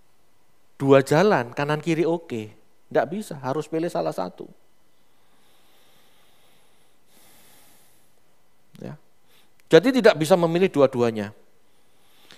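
A man speaks with animation into a headset microphone, pausing between phrases.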